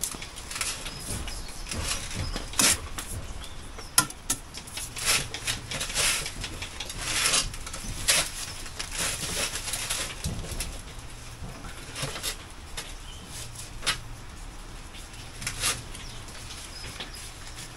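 A man talks casually at close range.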